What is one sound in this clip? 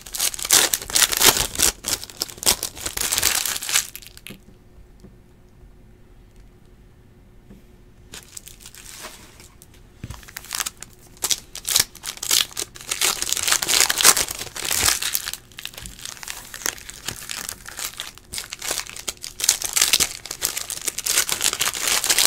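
Hands crinkle and tear open foil trading card packs.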